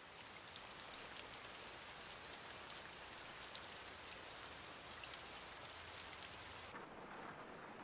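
Rain patters softly against a window.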